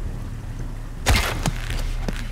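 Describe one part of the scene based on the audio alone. A bowstring snaps as an arrow is fired.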